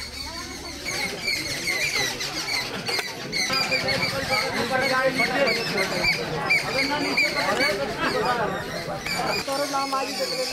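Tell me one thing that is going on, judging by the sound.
A large crowd of men and women talks and calls out outdoors.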